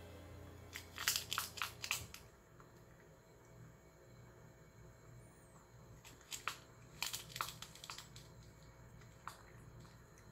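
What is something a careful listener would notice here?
A rabbit nibbles and crunches on a chew toy.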